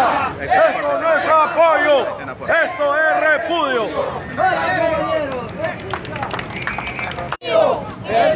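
A man shouts loudly close by.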